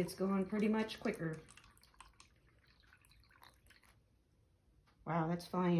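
Liquid trickles from a cup into a shallow tray.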